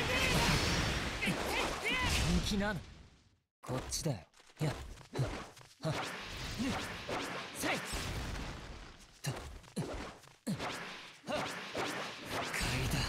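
Sword slashes whoosh and swish in quick bursts.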